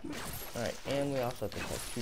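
A blaster fires a short zapping shot.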